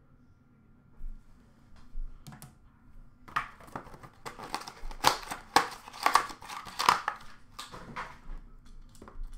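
Small cardboard boxes are handled and set down on a glass counter.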